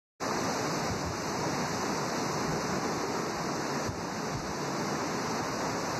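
Strong wind roars through trees.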